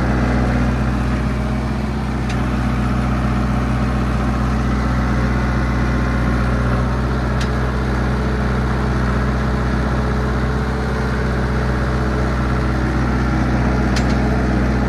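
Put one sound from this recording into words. Metal tracks clank and squeak as a bulldozer crawls over snow.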